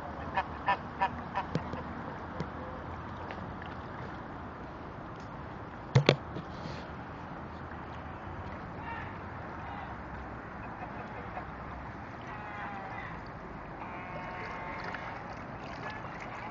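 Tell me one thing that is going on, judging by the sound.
Geese honk in short bursts.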